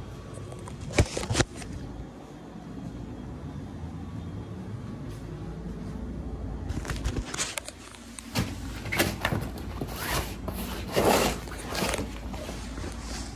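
A fabric bag rustles and crinkles as it is handled.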